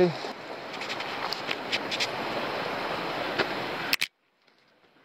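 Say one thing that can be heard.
Footsteps crunch on a dirt path with rustling leaves.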